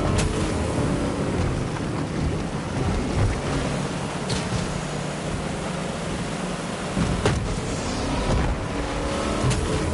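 Water splashes against a speeding boat.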